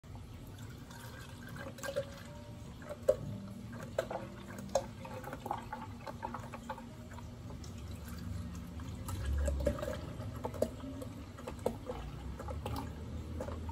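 Milk pours from a carton into a plastic container.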